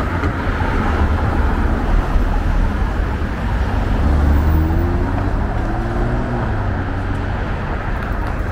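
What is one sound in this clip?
A car engine hums as a car pulls away nearby.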